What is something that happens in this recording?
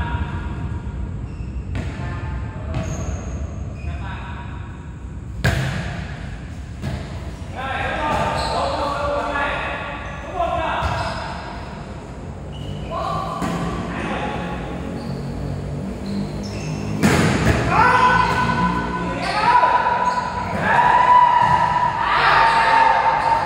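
Young men shout and call out to each other in an echoing hall.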